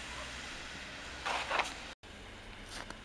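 A shovel scrapes on snow.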